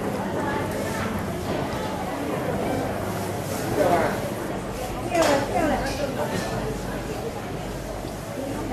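Many people chatter indistinctly nearby and in the distance.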